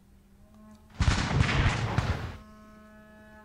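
A burst of gunfire and explosions crackles and rumbles in a battle sound effect.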